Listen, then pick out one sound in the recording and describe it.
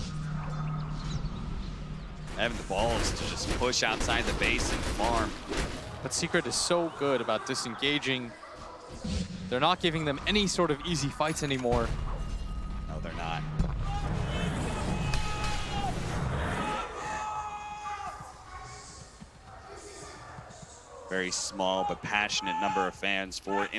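Magic spell effects whoosh and crackle in a battle.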